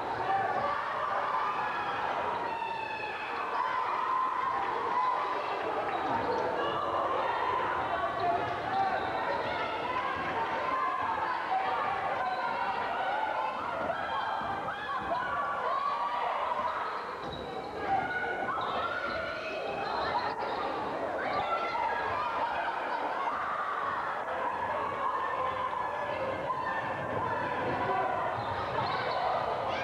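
A crowd chatters and cheers throughout a large echoing gym.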